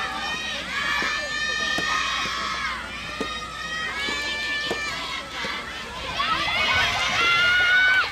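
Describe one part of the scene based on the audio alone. A tennis ball is struck with rackets, with sharp pops.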